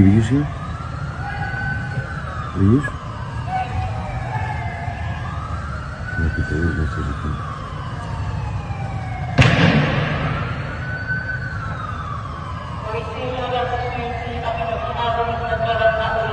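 A police siren wails nearby, rising and falling.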